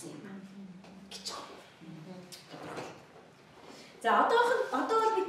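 A middle-aged woman speaks through a microphone, lecturing calmly.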